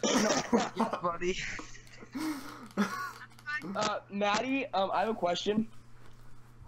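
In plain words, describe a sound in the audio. A teenage boy laughs loudly over an online call.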